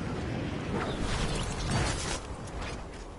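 A glider snaps open with a sudden whoosh.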